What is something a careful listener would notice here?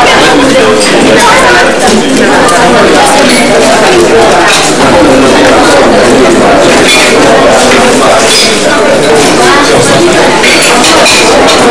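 Chopsticks and dishes clink on the table.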